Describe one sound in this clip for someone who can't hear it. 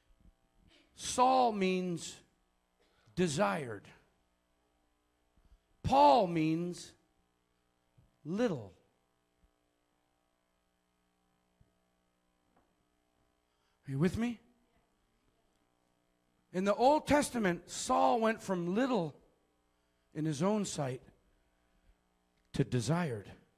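A man preaches with animation through a microphone, in short bursts with pauses.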